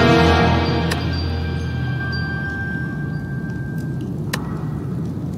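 A bright chime rings out and slowly fades.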